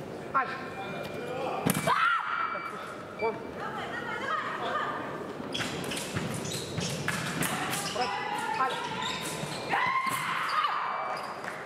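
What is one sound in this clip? A scoring machine beeps.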